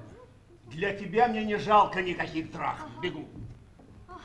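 A man speaks loudly and theatrically.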